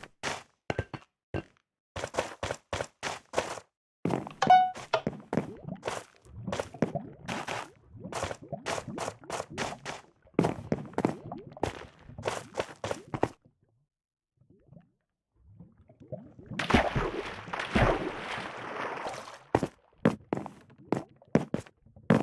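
Footsteps tap quickly on hard blocks.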